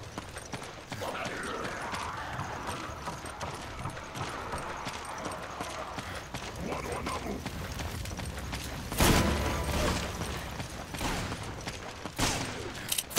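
Footsteps run quickly over dirt and wooden planks.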